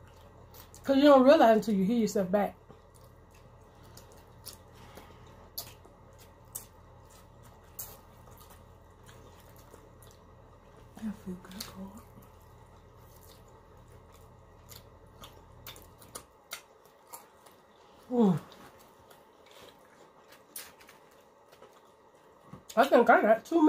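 Food crunches and smacks close up as two women chew.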